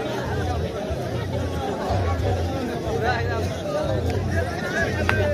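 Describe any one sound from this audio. Men in the crowd shout and cheer.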